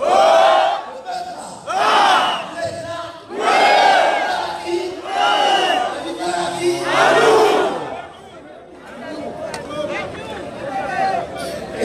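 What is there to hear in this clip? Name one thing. An elderly man speaks loudly and forcefully into a microphone over a loudspeaker outdoors.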